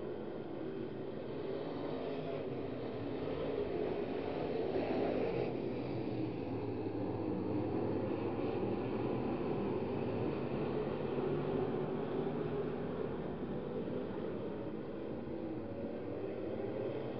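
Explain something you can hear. Race car engines roar loudly and steadily.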